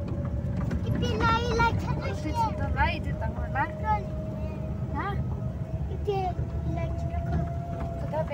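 A young child chatters and squeals excitedly.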